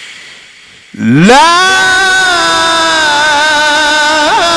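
A man chants in a long, wavering voice through a loudspeaker.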